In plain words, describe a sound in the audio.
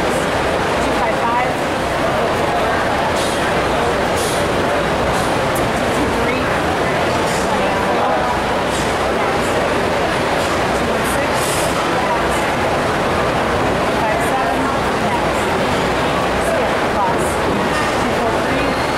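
A crowd murmurs steadily in a large echoing hall.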